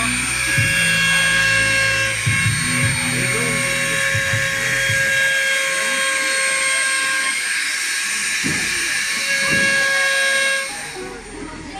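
A small rotary tool whines steadily as it engraves.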